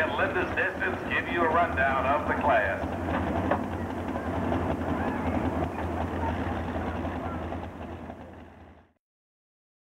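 A truck engine idles with a low, steady rumble, then fades out.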